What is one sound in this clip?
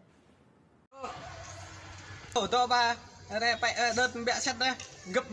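A young man speaks into a phone.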